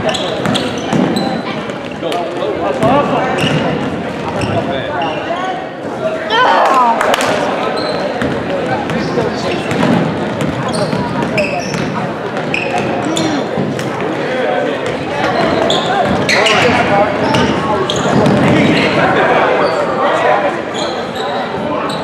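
A basketball bounces on a wooden floor with echoing thuds.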